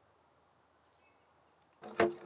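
A small bird chirps softly.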